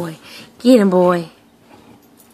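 A dog lets out a short, high whine.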